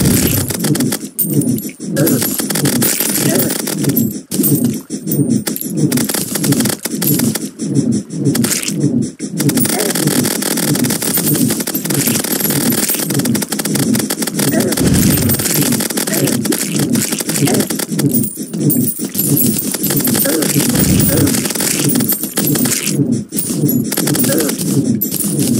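Fast, driving electronic music plays with a pounding beat.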